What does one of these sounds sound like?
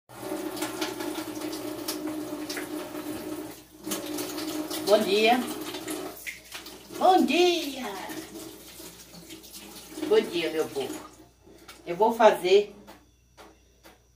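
Dishes clink in a sink.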